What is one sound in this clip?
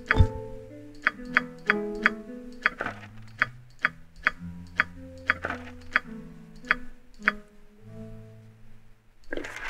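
Short interface clicks and chimes sound in quick succession.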